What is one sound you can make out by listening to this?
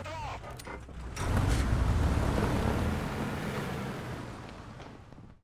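A shell explodes with a dull boom.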